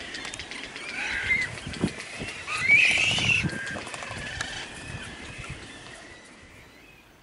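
Seabirds call and chatter nearby.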